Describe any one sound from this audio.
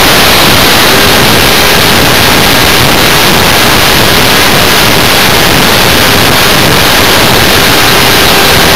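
Wind roars loudly and steadily past a small model plane in flight.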